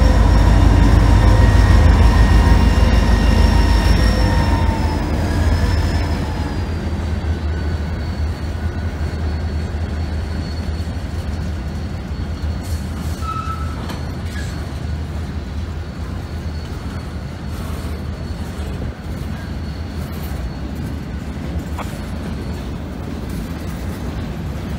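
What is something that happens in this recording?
Freight cars clatter and squeal along the rails.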